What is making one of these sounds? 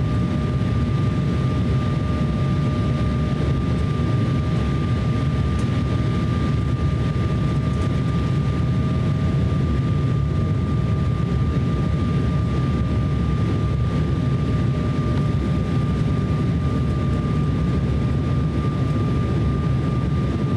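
Turbofan engines of an Embraer 170 regional jet roar steadily, heard from inside the cabin on approach.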